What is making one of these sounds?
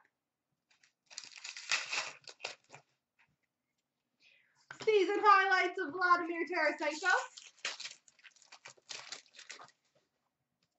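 A foil card pack crinkles and rustles as it is handled.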